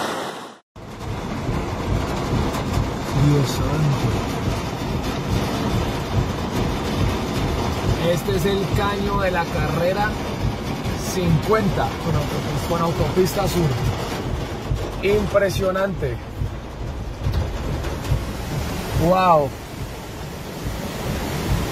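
Heavy rain pours down and drums on a car.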